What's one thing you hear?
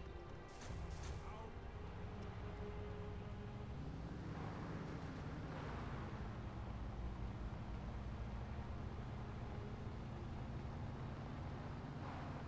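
A car engine revs and drones.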